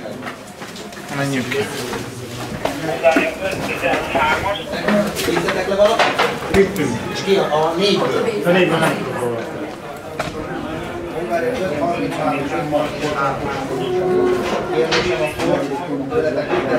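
Several men and women talk over one another nearby.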